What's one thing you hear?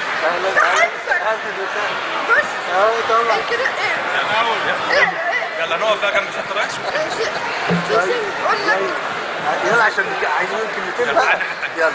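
A man speaks warmly up close.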